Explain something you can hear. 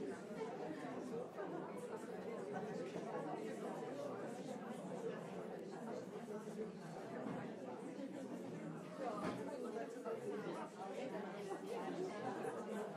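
A large audience murmurs and chatters in an echoing hall.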